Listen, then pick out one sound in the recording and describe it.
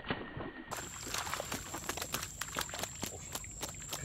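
Fish thrash and splash in a net.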